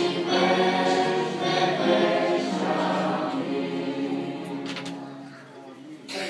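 A group of voices sings together in a large echoing hall.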